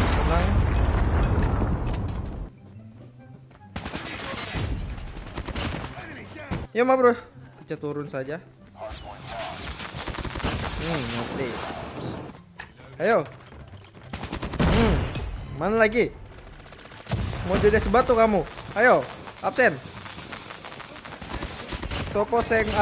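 Gunfire from a game rattles in quick bursts.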